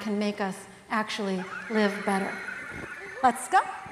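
A woman laughs through a microphone in a large hall.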